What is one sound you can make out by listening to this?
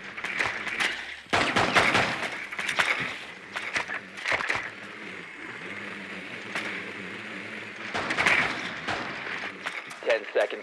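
A small remote-controlled drone whirs as it rolls.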